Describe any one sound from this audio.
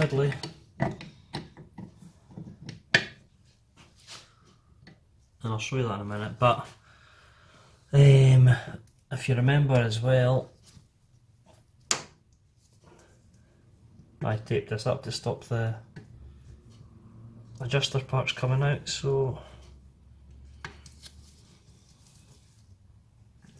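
Metal parts click and clink as a brake assembly is handled.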